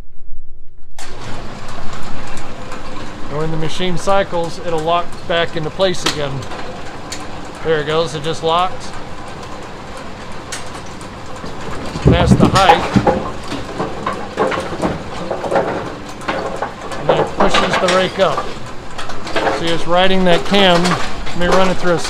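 A pinsetting machine clanks and rattles as it runs.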